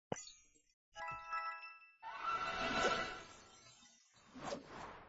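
A bright chiming jingle rings out in celebration.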